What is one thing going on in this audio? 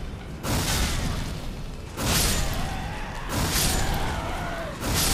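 A large magic sword swings through the air with a loud whoosh, again and again.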